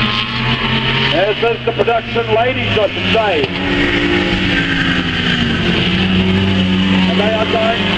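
Engines rev and whine as cars speed past close by.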